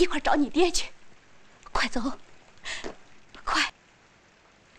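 A woman speaks softly and pleadingly nearby.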